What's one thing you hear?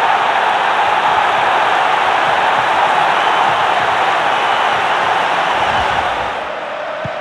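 A stadium crowd cheers loudly.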